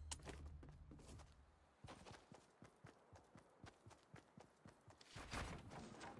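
Footsteps patter quickly on hard ground in a video game.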